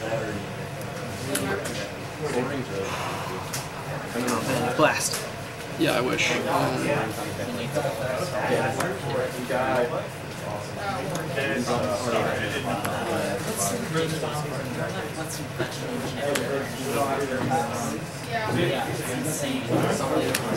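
Playing cards are laid down on a soft mat with light taps.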